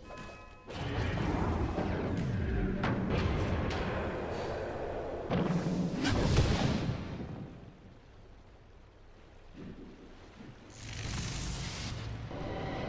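Magical spell effects whoosh and crackle.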